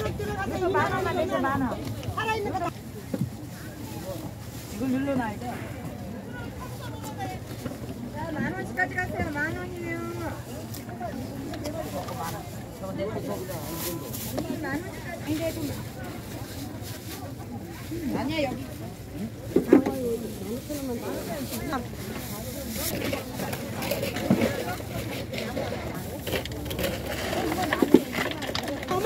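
A woman talks nearby with animation.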